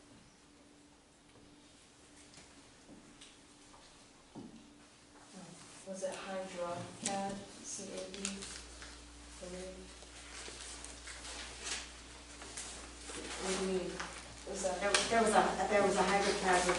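Papers rustle as a man handles them.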